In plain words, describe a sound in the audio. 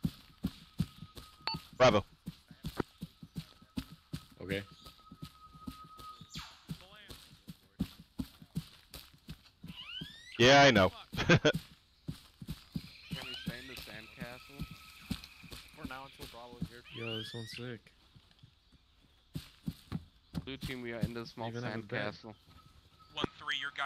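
Footsteps rustle through tall grass and undergrowth.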